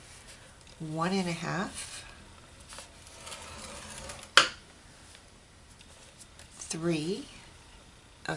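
A bone folder scores card stock along a groove.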